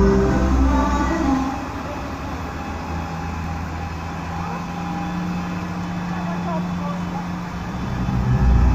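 A truck engine rumbles steadily as the truck drives past.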